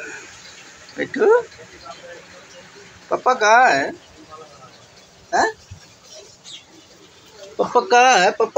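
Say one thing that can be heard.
A parrot squawks and chatters loudly up close.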